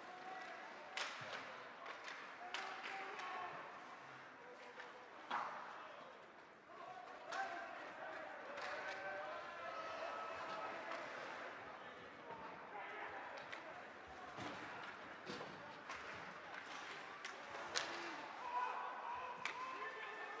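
Sticks clack against a puck.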